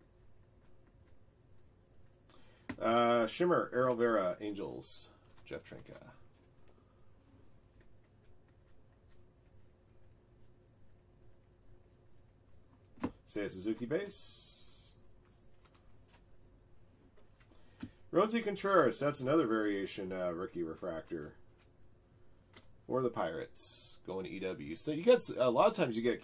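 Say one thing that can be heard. Trading cards slide and rustle in hands.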